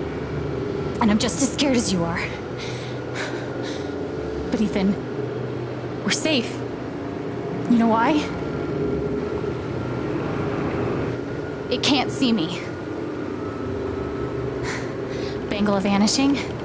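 A young woman speaks softly and gently, close by.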